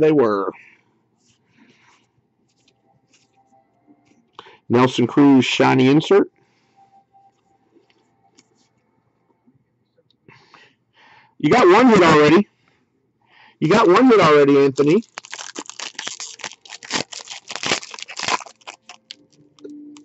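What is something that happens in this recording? A plastic wrapper crinkles in hands.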